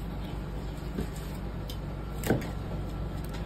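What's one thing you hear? A knife taps against a cutting board.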